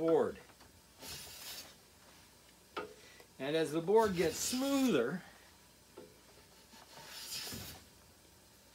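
A hand plane shaves wood with a hissing swish.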